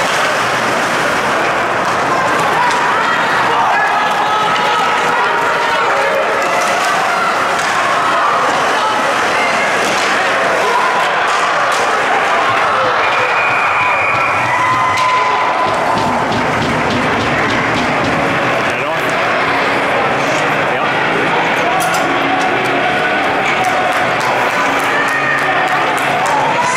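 A crowd of spectators cheers and shouts in a large echoing rink.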